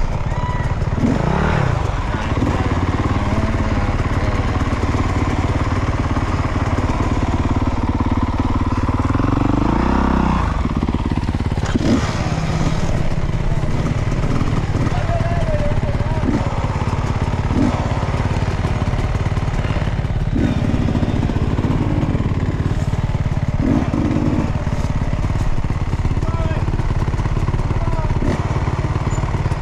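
A dirt bike engine idles and revs close by.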